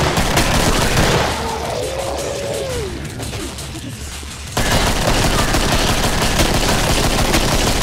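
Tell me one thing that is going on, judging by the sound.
Creatures shriek and snarl nearby.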